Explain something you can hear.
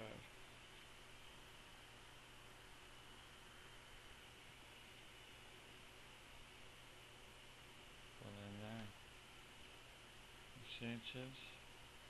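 Cards rustle and slide against each other in hands.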